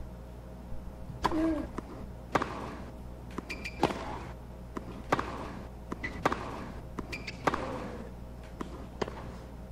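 A tennis ball is struck back and forth with rackets.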